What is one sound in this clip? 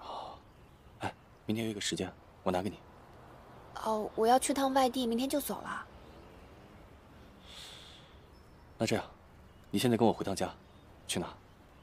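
A young man speaks softly and calmly, close by.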